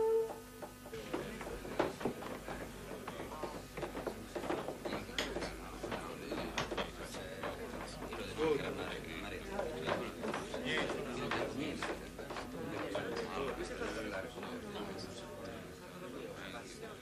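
An audience murmurs and shuffles in an echoing hall.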